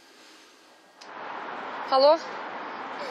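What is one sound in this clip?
A young woman speaks into a mobile phone.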